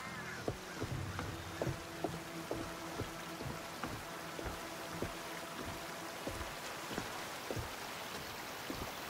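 Footsteps thud on wooden planks at a steady pace.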